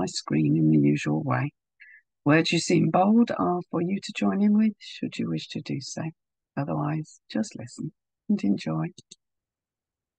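An elderly woman talks calmly over an online call.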